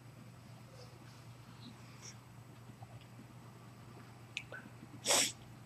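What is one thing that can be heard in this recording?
A man breathes loudly through an open mouth.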